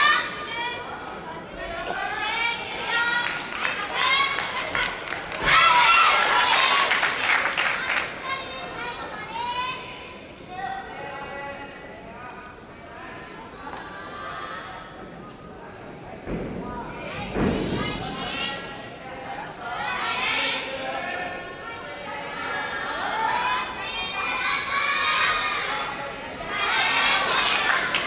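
Young women chatter nearby in a large echoing hall.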